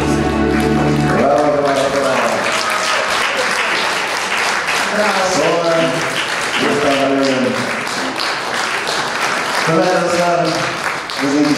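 A crowd applauds with steady clapping.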